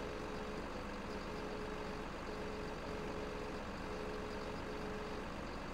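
A heavy machine engine hums steadily.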